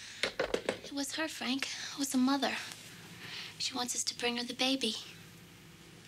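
A young woman speaks in a worried voice.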